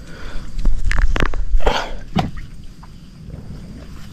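A baited line plops into calm water.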